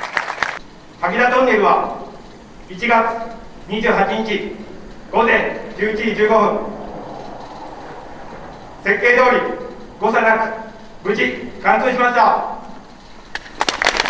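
A man speaks formally through a microphone and loudspeaker in an echoing tunnel.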